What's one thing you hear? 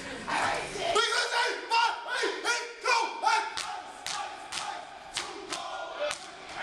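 Hands clap and slap in sharp beats.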